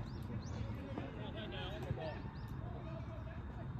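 Young men call out faintly in the distance.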